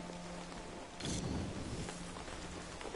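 A fiery blast bursts with a low roar.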